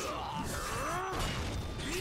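A heavy blow lands with a sharp crack.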